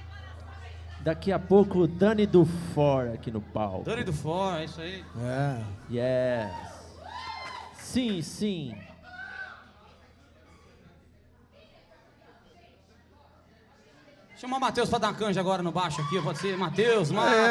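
A live band plays guitars, bass and hand percussion.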